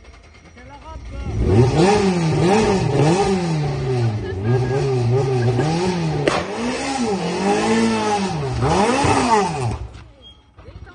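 A rally car engine revs hard and roars, rising and falling in pitch with gear changes.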